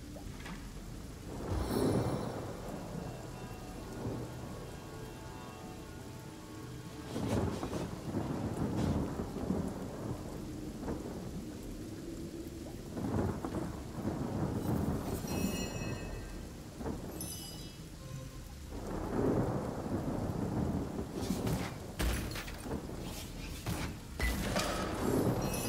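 Rain falls steadily.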